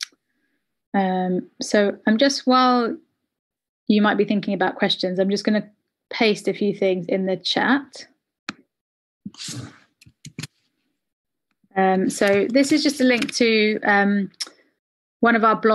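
A young woman speaks calmly into a microphone, close up, with pauses.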